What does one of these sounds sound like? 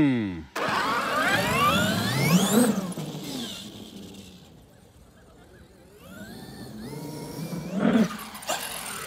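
The electric motor of a toy car whines loudly, rising in pitch, fading into the distance, then coming back.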